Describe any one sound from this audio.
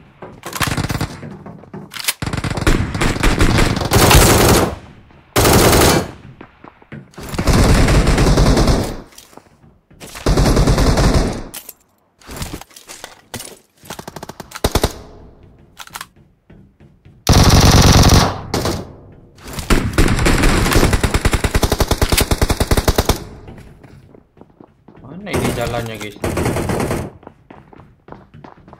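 Gunfire bursts from a video game.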